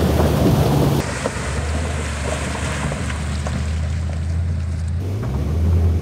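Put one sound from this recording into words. Water splashes under a truck's tyres.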